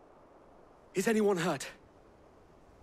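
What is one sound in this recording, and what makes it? A man asks a short question calmly.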